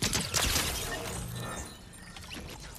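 A blaster fires a loud electronic zapping shot.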